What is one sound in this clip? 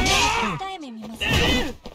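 A punch lands with a heavy thud.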